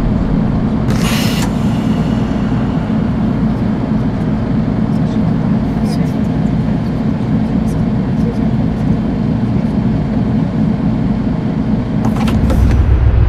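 A bus engine idles with a low steady rumble.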